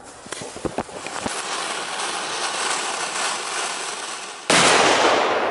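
A ground firework fountain hisses and sprays sparks.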